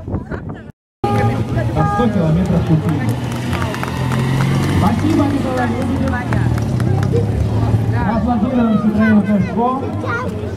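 A small car engine hums and revs as the car turns close by.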